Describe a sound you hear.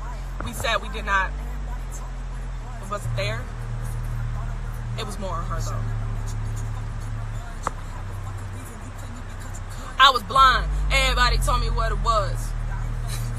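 A young woman talks casually and close up through a phone microphone.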